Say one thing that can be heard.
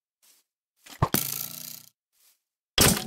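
An arrow whizzes past.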